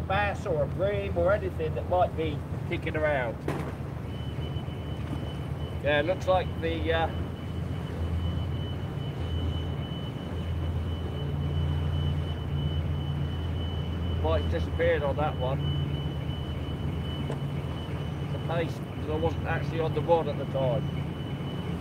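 A man talks casually nearby, in short bursts.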